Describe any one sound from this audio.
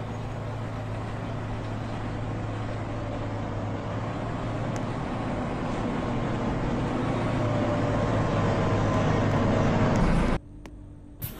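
A bus engine rumbles closer, growing steadily louder.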